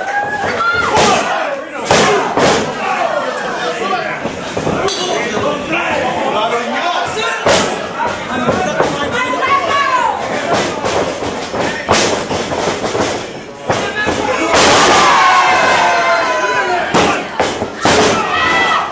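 Bodies slam loudly onto a mat, again and again.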